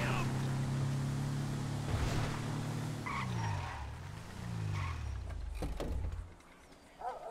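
A van engine rumbles as it drives along.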